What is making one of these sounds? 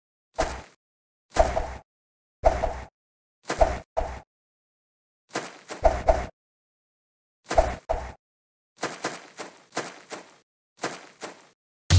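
A game gun fires in short, sharp bursts.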